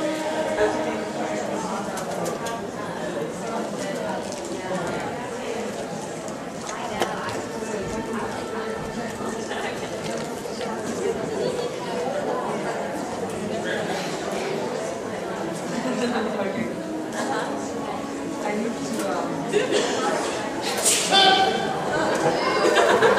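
Actors speak theatrically on a stage in a large hall.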